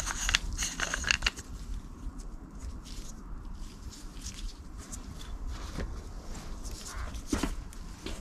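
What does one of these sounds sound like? Plastic parts click and rattle in hands.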